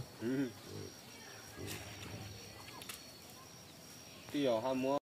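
A pig snuffles and roots in loose dirt.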